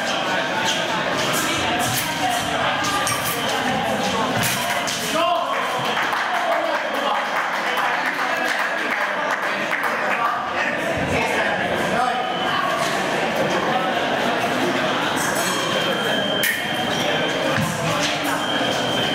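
Fencing blades clash and click sharply.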